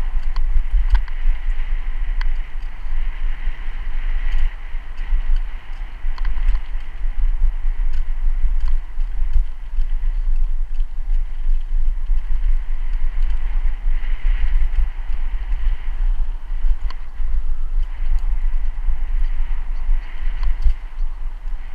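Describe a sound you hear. A bicycle rattles and clicks over bumps in the road.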